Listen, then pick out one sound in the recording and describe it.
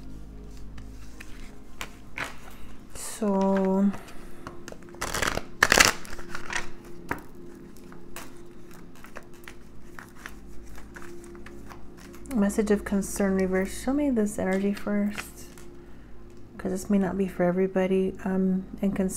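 Cards riffle and flick as they are shuffled by hand.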